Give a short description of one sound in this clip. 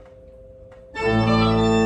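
An organ bursts into a loud, full chord in an echoing room.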